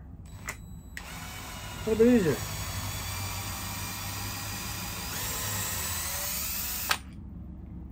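A cordless drill whirs steadily and speeds up.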